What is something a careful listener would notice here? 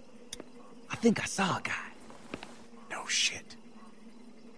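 A man whispers urgently nearby.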